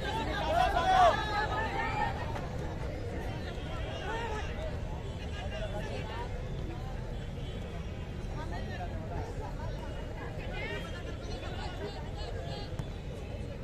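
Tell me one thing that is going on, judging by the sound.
A large crowd outdoors cheers and shouts, loudest at the start.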